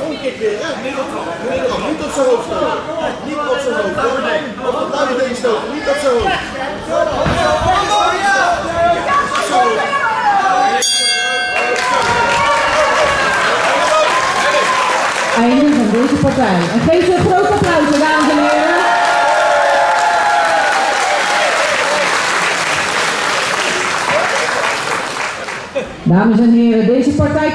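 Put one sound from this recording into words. A crowd of spectators chatters and cheers loudly in a large echoing hall.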